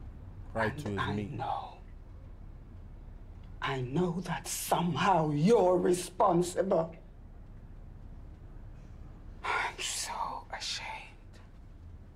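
A man speaks softly and with emotion.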